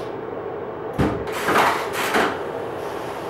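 A washing machine lid bangs shut.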